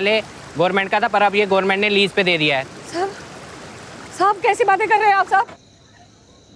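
A woman speaks loudly and emotionally, close by.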